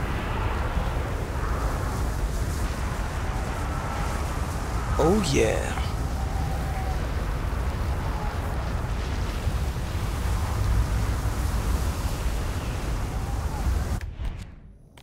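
Footsteps crunch through dense undergrowth.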